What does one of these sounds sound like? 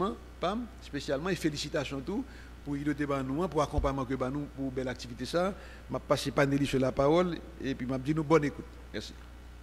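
An older man speaks firmly into a microphone over a loudspeaker in an echoing room.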